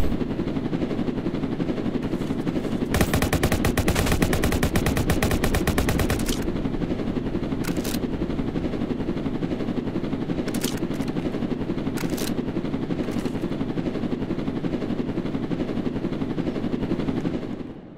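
A flying car's rotors whir with a steady low drone.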